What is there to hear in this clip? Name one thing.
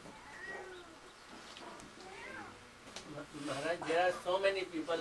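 An elderly man speaks calmly and nearby.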